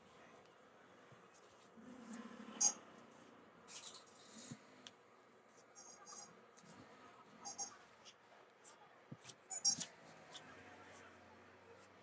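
Chalk scratches lightly on cloth.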